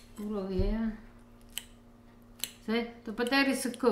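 A fork clinks on a ceramic plate.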